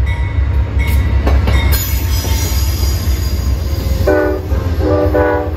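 Train wheels clatter over the rails.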